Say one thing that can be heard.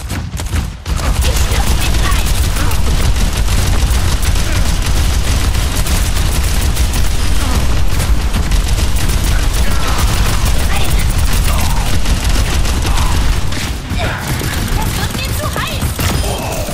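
Guns fire rapidly in a loud battle.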